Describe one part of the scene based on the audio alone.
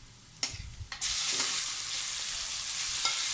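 Chicken pieces hiss and sizzle loudly as they drop into a hot pan.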